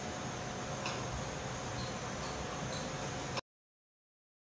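Small dishes clink as they are set down on a wooden table.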